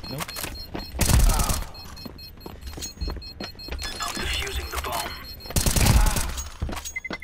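Rifle shots ring out in short, loud bursts.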